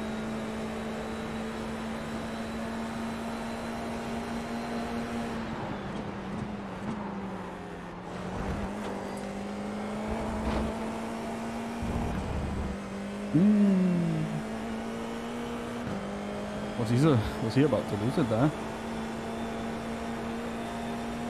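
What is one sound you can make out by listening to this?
A racing car engine drones steadily, dropping in pitch as it slows and rising again.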